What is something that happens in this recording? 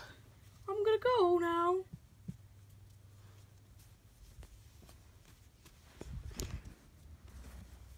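A hand rustles soft plush toys against fabric.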